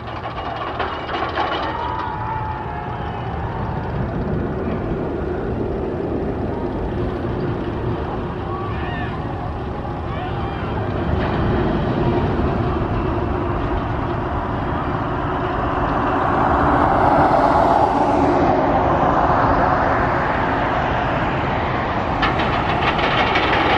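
Wind buffets loudly throughout.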